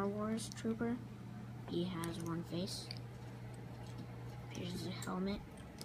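Small plastic toy pieces click together under fingers.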